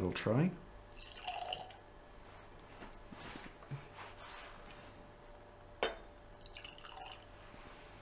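Liquid pours gently into a small glass.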